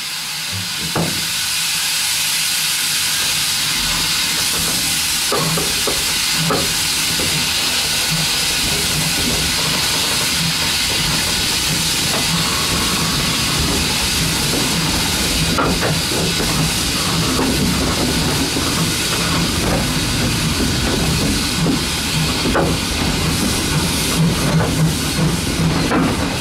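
Wheels clatter and knock on rail joints.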